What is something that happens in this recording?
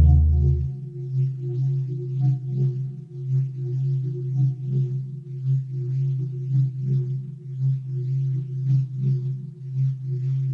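A modular synthesizer plays a deep, pulsing electronic drone with rhythmic hissing beats.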